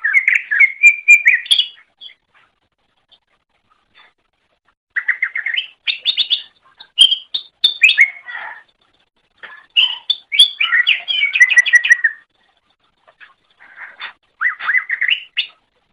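A small songbird sings loud, quick chirping phrases in bursts.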